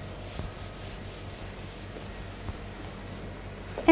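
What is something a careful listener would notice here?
A marker scrapes on a whiteboard.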